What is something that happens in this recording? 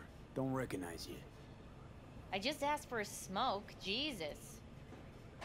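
A young woman speaks casually, close by.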